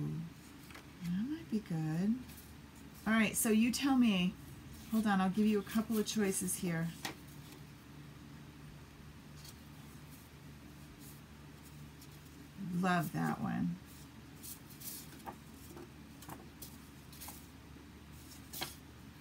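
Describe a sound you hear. Sheets of card paper rustle and slide against each other.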